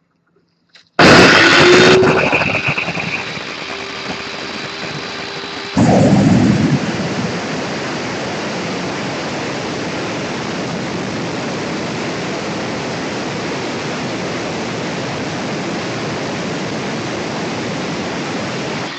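An electric tile saw whirs steadily.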